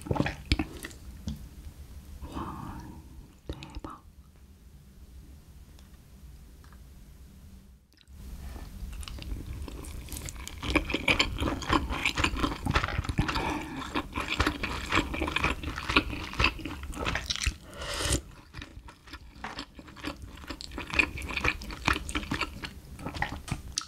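Chopsticks and a spoon clink against a dish.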